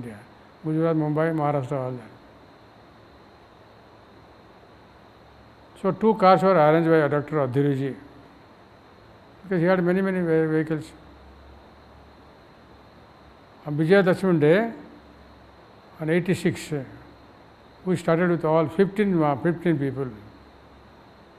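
An elderly man speaks slowly and calmly into a nearby microphone, with long pauses.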